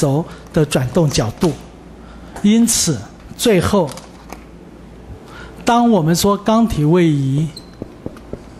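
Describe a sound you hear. A man lectures through a headset microphone, speaking with animation.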